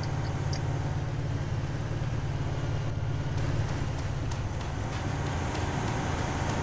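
A quad bike engine rumbles steadily.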